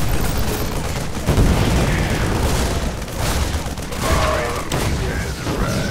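Small guns fire in rapid bursts.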